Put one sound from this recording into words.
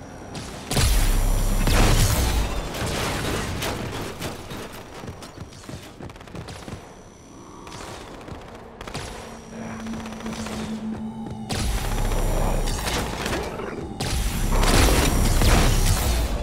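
A weapon fires a loud crackling energy beam.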